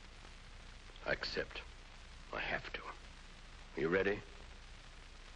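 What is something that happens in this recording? A man speaks calmly and slowly.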